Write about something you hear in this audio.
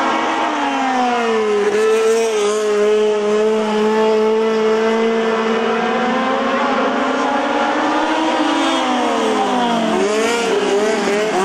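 Small racing car engines whine and rev loudly as they race by.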